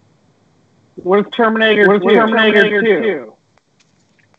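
A man speaks through a microphone over an online call.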